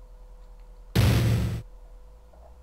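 A video game menu gives a loud, short burst of sound.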